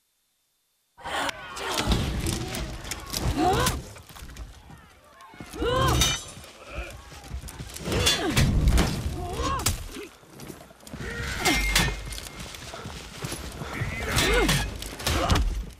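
Steel weapons clash and strike in a fierce fight.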